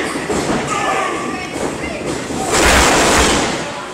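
Bodies slam onto a wrestling ring mat with a loud thud.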